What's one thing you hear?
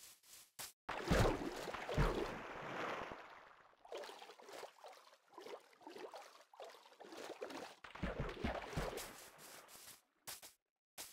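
Water splashes loudly as something plunges in, then bubbles and swishes.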